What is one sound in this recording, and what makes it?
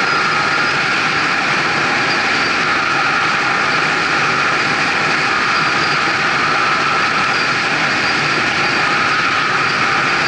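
An engine hums steadily at speed.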